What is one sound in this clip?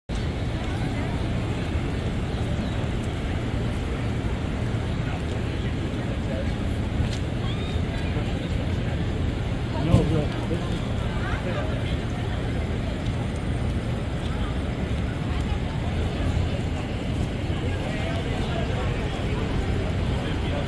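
A crowd murmurs and chatters outdoors in a busy open square.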